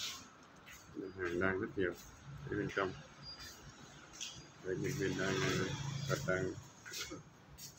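A man talks nearby in a casual voice.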